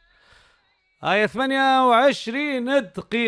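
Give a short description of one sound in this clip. A man speaks clearly and with animation.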